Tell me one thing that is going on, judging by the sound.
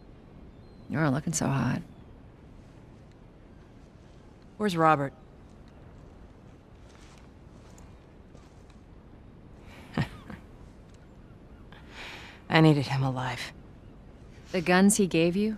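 A woman speaks calmly, close by, in short remarks.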